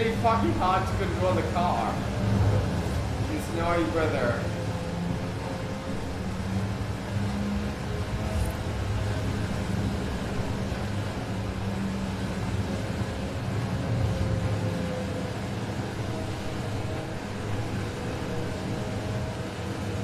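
A sports car engine hums steadily at speed.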